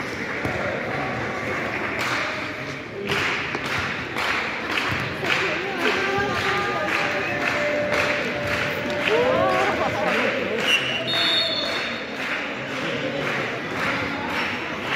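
A ball thuds and bounces on a hard floor.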